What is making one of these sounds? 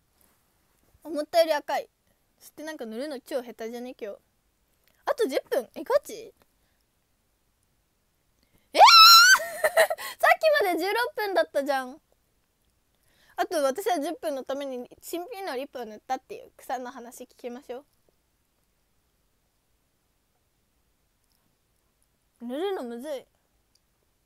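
A young woman talks animatedly, close up.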